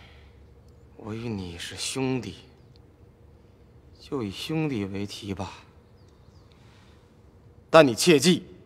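A man speaks slowly and gravely, close by.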